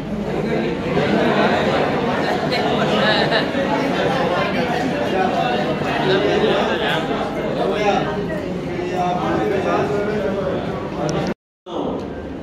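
An elderly man speaks loudly to a group.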